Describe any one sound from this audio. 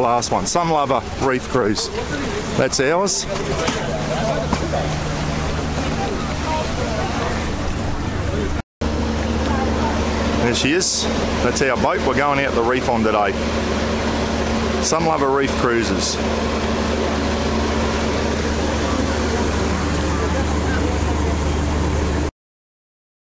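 A boat engine idles with a steady low hum.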